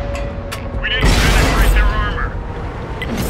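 A shell explodes nearby, throwing up debris.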